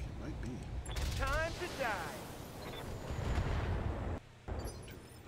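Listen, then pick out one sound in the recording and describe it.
A heavy cannon fires with loud, booming blasts.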